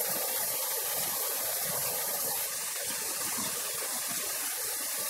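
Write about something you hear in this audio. Fast water rushes and churns loudly over rocks.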